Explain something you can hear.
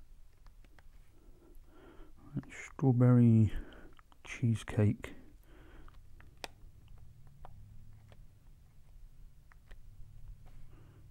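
Small plastic buttons click under a finger.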